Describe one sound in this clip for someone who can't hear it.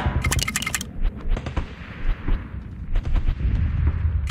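Rapid gunfire pops and crackles.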